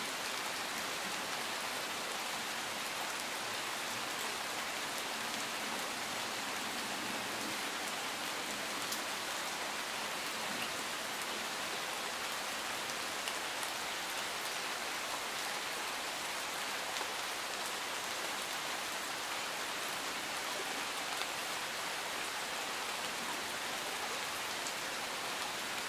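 Steady rain falls and patters on leaves and gravel outdoors.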